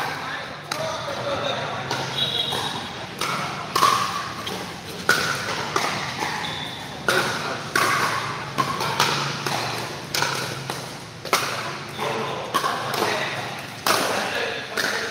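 Men talk and call out nearby in a large echoing hall.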